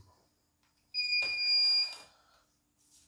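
A sewing machine gives a short electronic beep.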